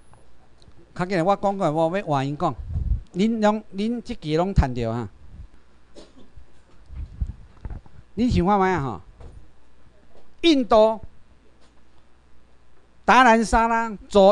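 A man speaks into a microphone over a loudspeaker in a large room, in short phrases.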